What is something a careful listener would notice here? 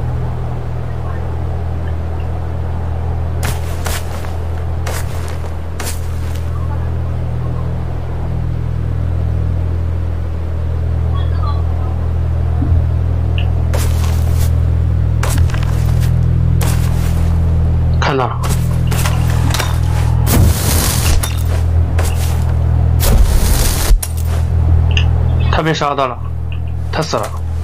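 Grass rustles as someone crawls through it.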